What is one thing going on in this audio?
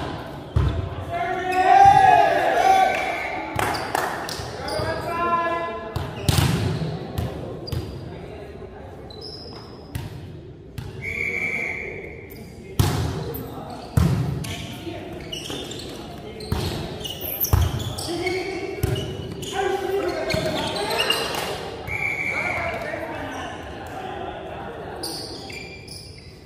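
A volleyball is struck with sharp slaps that echo through a large hall.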